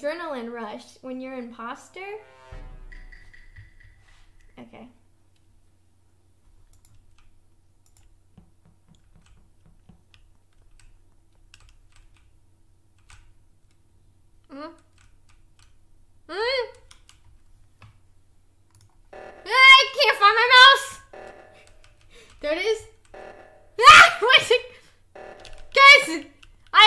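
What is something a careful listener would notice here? Two young women talk and exclaim with animation into microphones.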